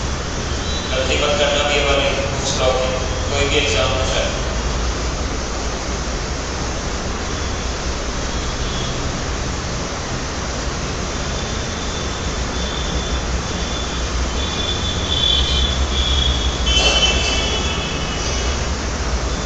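A man speaks calmly, as if teaching, nearby.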